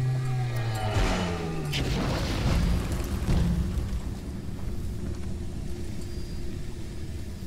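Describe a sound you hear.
Fire bursts with a roaring whoosh.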